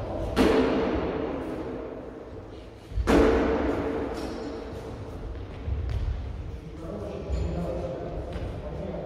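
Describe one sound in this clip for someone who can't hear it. Footsteps shuffle and thud on a wooden floor.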